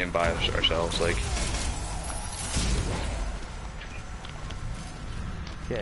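Energy blasts and explosions rumble in a game.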